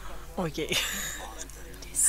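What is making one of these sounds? A woman laughs close to a microphone.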